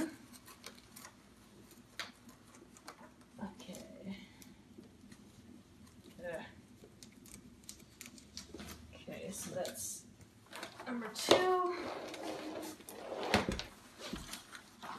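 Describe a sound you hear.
A metal and plastic frame clicks and rattles as it is handled.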